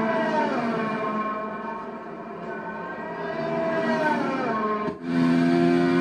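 A racing car engine screams past and drops in pitch.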